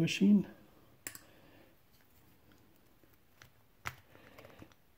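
A screwdriver clicks and scrapes against small metal parts.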